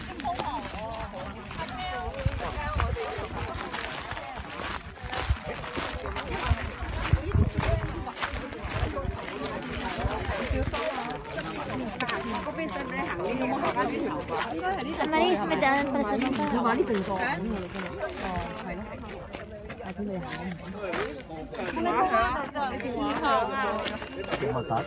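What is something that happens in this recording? Several men and women chat nearby outdoors.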